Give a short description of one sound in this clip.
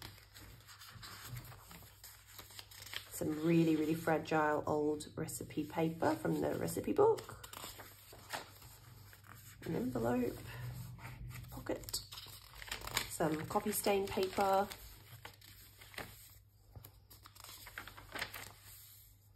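Paper pages rustle and turn.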